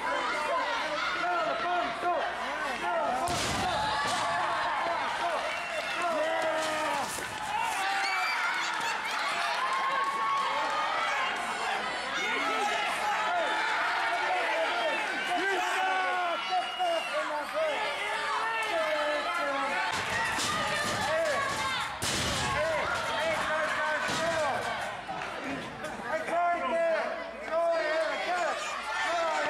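A crowd of children and adults shouts and cheers in a large echoing hall.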